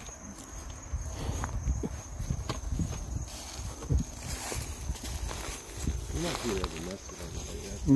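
Footsteps crunch through dry leaves and grass outdoors.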